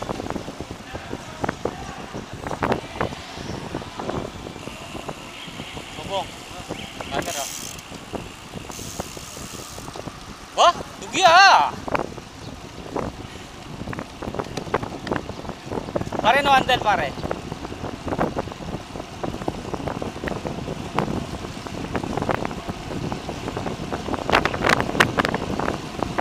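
Bicycle tyres hum and rattle on a paved path.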